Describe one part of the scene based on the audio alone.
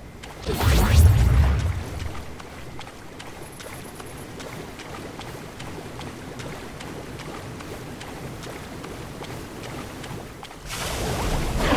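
Water splashes as a figure wades through a lake.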